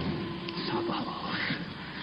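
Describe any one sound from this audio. A middle-aged man speaks in a low voice.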